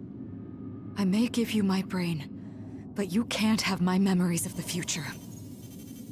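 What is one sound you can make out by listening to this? A young woman speaks calmly and quietly.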